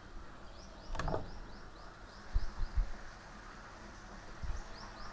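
Wooden doors swing open with a soft knock.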